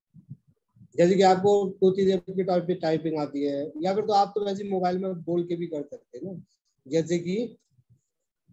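An elderly man speaks calmly into a microphone, as if on an online call.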